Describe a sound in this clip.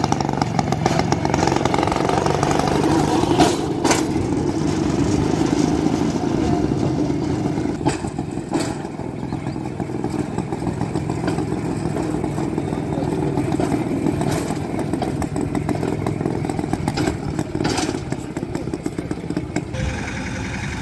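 Small metal wheels rumble and clatter along rails.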